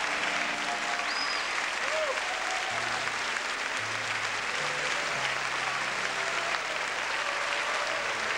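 A large crowd claps.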